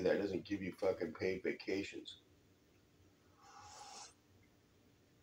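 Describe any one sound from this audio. A man sips a drink from a mug.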